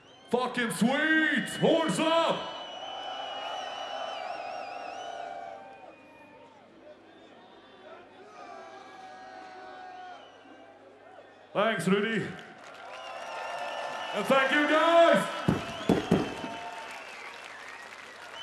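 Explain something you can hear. A large outdoor crowd cheers and screams loudly.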